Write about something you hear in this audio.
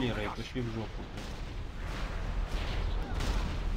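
Magic spells crackle and burst in a fantasy battle.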